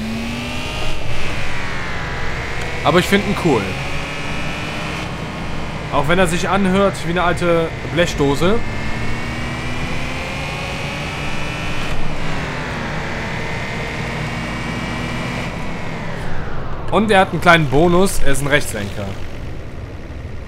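A car engine hums, its pitch slowly rising and falling.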